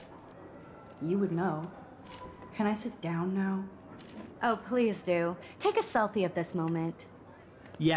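A young woman speaks sarcastically.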